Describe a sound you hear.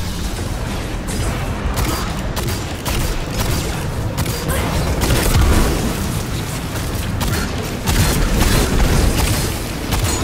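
Explosions burst with fiery blasts.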